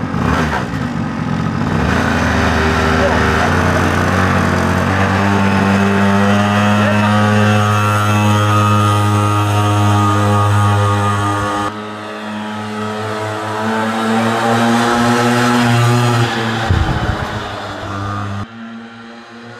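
A small motorbike engine buzzes and revs, rising and falling in pitch.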